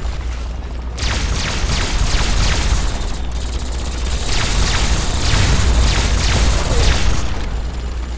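Laser guns fire in rapid crackling bursts.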